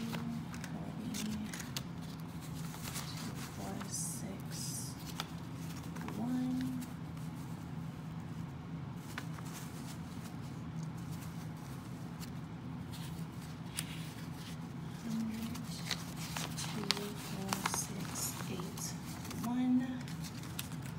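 Paper banknotes rustle and flick as they are counted by hand.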